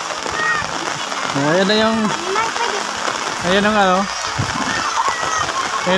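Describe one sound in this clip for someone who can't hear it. Children shout and call out nearby.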